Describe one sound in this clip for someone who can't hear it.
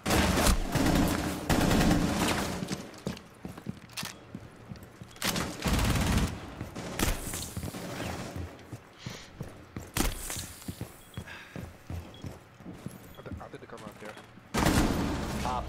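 Gunshots crack in quick, loud bursts.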